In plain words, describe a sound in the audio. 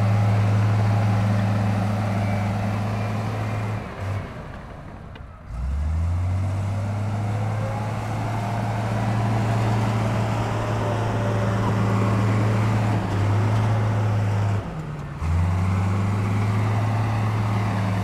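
Bulldozer tracks clank over rocky ground.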